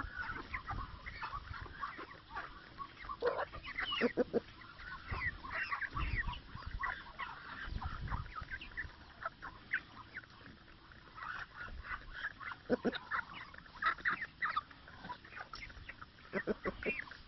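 Chickens peck rapidly at food on the ground.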